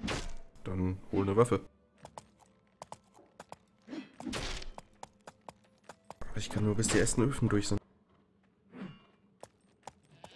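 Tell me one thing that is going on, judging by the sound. A horse's hooves clop slowly on cobblestones.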